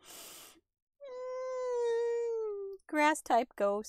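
A creature lets out a long, wavering cry.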